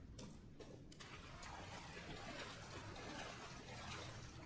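Water laps gently nearby.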